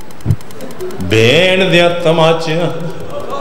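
A man speaks loudly into a microphone, in a rising, chanting voice.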